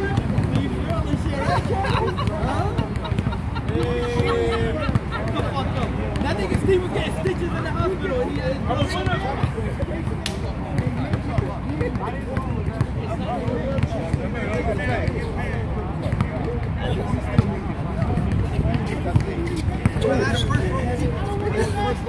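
Men talk and call out to each other.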